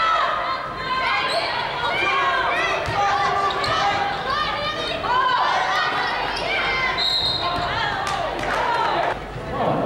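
Basketball sneakers squeak on a hardwood court.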